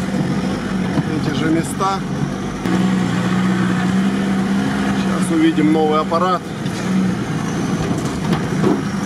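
A vehicle body rattles and bumps over rough ground.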